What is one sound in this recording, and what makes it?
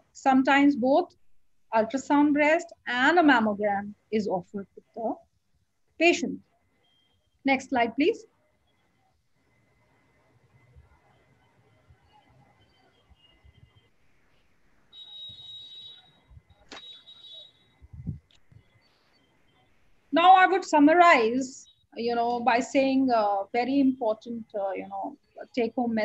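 A woman speaks calmly through an online call, pausing now and then.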